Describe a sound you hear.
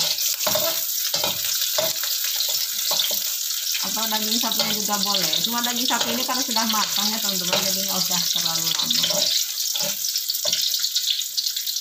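A spatula scrapes against a metal pan.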